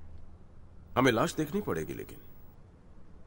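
A young woman speaks briefly in a tense voice, close by.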